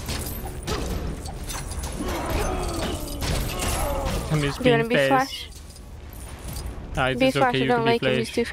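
Zaps, thuds and crashes of a cartoon brawl clatter quickly.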